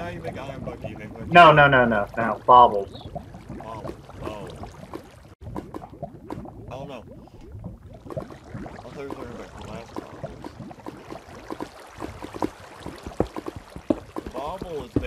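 Lava bubbles and pops softly.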